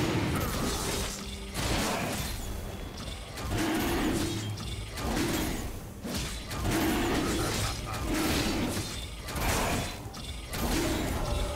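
Magic spells crackle and whoosh in repeated bursts.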